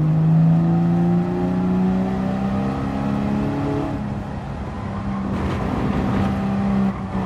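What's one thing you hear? A racing car engine roars loudly, its pitch falling and rising through the gears.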